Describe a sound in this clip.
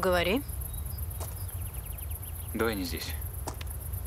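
A young woman speaks in short, rising exclamations nearby.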